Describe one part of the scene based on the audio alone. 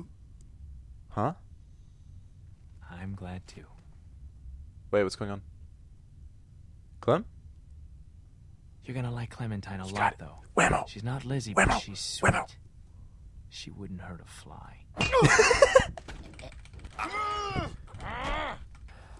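A young man reacts aloud with emotion, close to a microphone.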